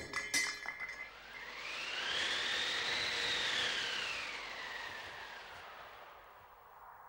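Wind gusts and whooshes, rising and fading.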